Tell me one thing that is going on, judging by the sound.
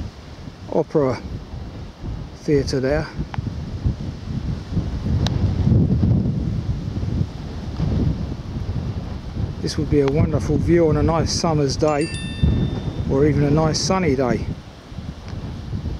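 Wind gusts and rumbles across open country.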